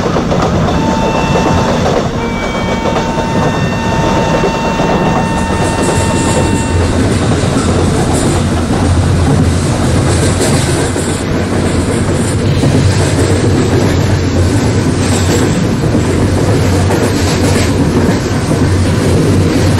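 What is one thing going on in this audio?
An electric locomotive hums and rumbles steadily along the track.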